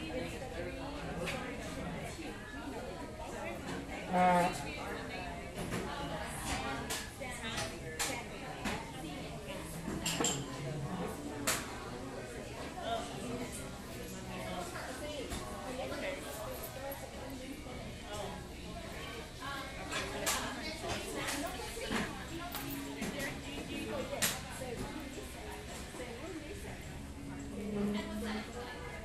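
A crowd of men and women chat at a low murmur in a busy room.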